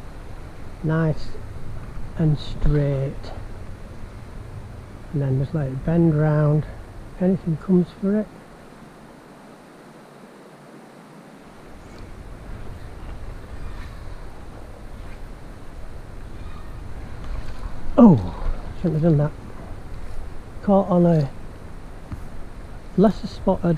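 A shallow river ripples and gurgles over stones.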